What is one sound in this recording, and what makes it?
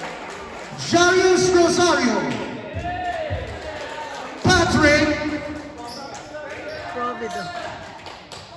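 Young players shout and chant together loudly in a large echoing gym.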